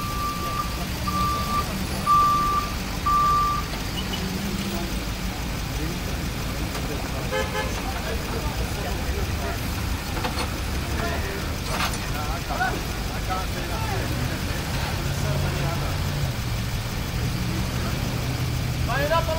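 Traffic hums outdoors in the street.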